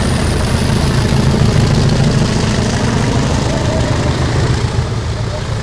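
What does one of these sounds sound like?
A diesel train engine rumbles loudly as the train rolls past.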